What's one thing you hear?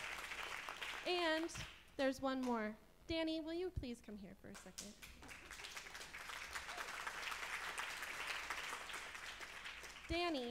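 A young woman sings into a microphone, heard through loudspeakers in a large hall.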